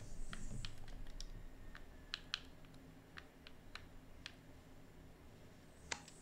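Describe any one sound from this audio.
Soft interface clicks tick several times.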